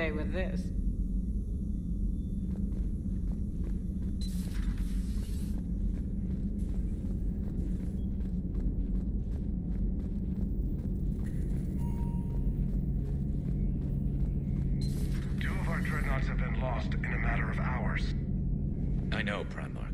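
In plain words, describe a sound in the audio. A low, steady engine hum drones.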